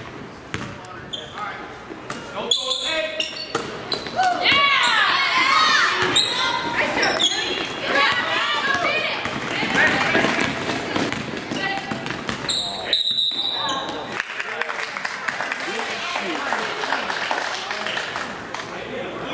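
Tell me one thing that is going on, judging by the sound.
A crowd in the stands cheers and shouts in a large echoing gym.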